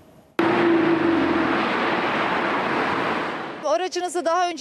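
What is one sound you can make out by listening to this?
A car drives past close by with a rushing engine noise.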